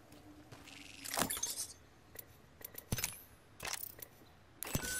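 Short game menu clicks and beeps sound.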